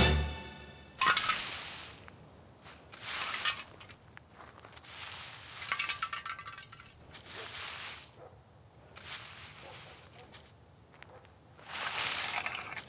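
A broom sweeps across rough ground in repeated scratchy strokes.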